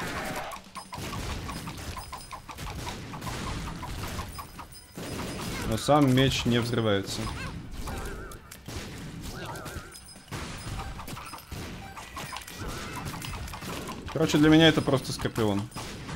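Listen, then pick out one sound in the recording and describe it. Video game shots and splats pop rapidly.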